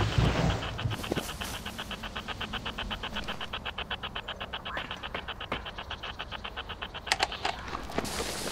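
A handheld radio crackles with rapid, pulsing static.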